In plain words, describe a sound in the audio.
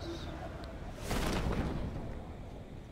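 A parachute opens with a sudden whooshing flap.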